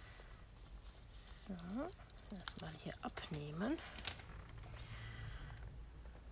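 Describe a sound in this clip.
Paper and ribbon rustle softly as they are handled.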